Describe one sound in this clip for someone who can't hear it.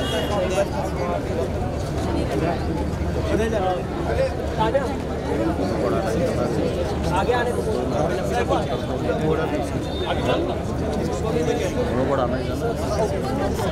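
An elderly man talks with animation, close by.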